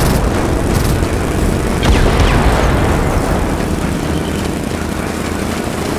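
Explosions boom nearby with heavy rumbling.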